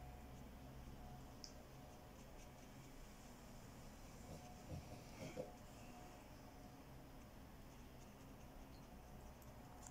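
A paintbrush dabs softly on paper.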